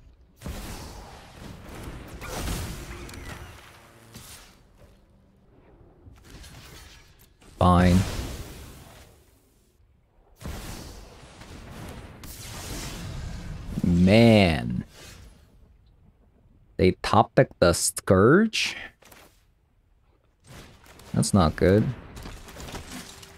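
Game sound effects chime and whoosh as cards are played.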